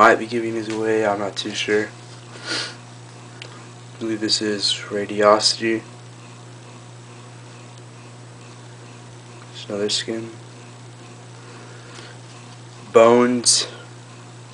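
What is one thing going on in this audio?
Stiff paper cards rustle and slide as hands handle them.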